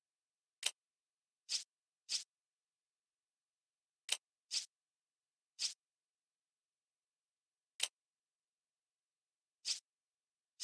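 Short soft menu clicks sound one at a time as settings change.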